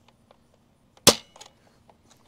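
A toy foam blaster fires a dart with a sharp snap.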